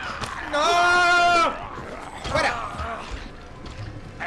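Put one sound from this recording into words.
A zombie growls and snarls while attacking.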